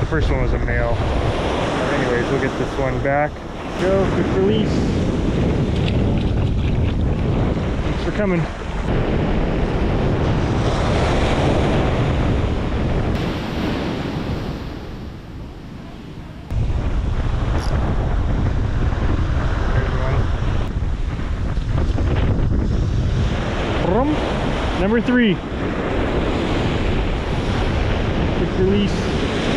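Waves break and wash up onto the shore.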